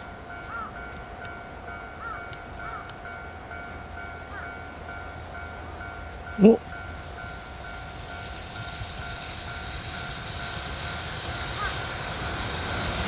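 A level crossing bell rings steadily in the distance.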